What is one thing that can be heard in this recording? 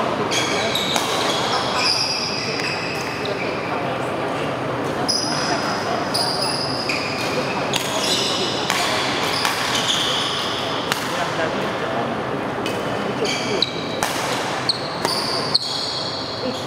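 Rackets strike a shuttlecock back and forth in an echoing hall.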